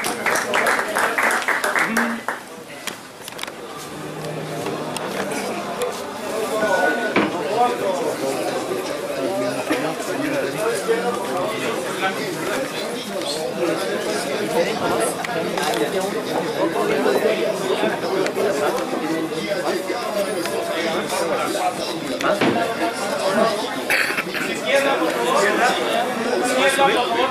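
A large crowd chatters loudly in a big room.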